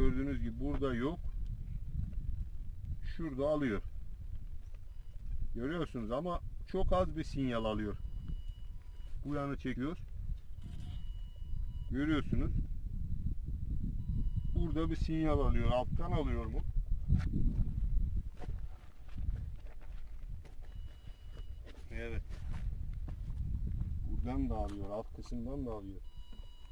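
A metal detector gives out short warbling tones.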